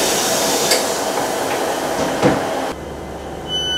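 A train rumbles along.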